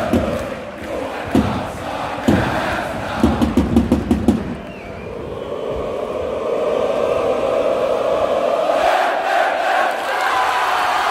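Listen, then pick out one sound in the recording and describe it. A large crowd cheers and roars in an open stadium.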